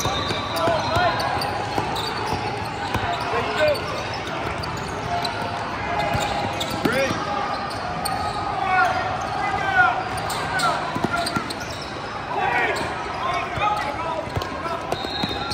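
Players and spectators call out in a large echoing hall.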